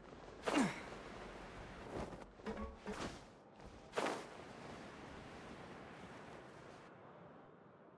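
Wind rushes past during a glide through the air.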